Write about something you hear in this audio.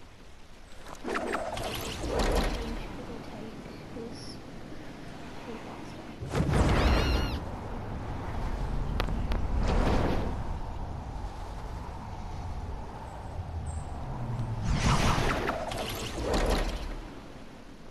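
Air rushes past a gliding figure in loud whooshing bursts.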